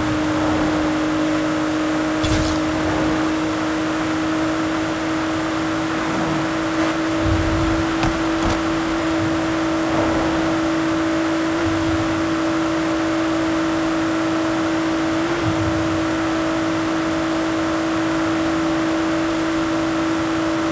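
A car engine drones steadily at high speed.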